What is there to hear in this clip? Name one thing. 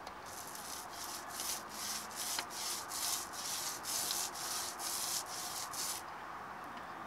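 A brush scrubs a hard surface in quick, even strokes.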